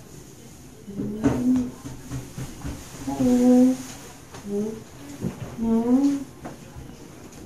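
A cat meows loudly and plaintively, again and again.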